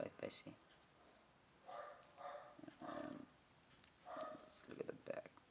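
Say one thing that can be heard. Metal coins clink softly against each other.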